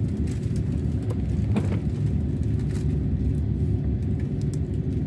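A train rumbles steadily along the tracks at speed.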